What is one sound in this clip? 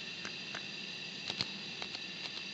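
Calculator keys click as they are pressed.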